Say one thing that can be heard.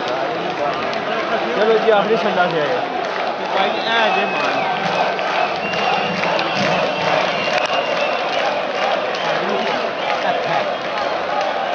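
A large crowd cheers and shouts loudly.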